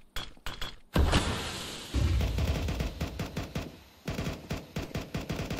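A smoke grenade hisses loudly as it spreads.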